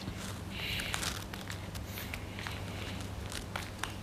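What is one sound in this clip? A plastic pouch crinkles as it is handled.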